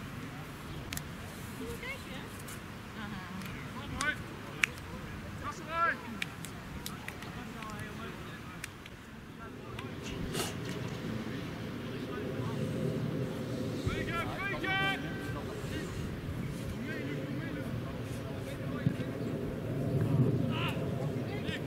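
Men shout to each other across an open football pitch outdoors.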